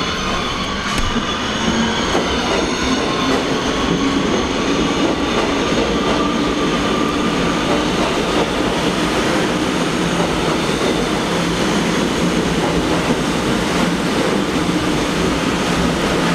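A subway train roars into an echoing underground station.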